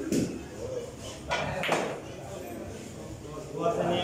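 Pool balls clack together.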